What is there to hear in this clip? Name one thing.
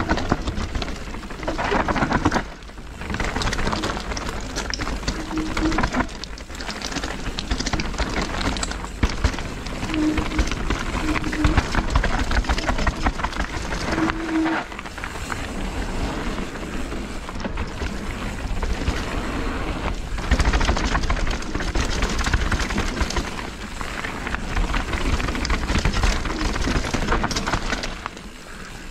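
A bike's chain and frame rattle over bumps.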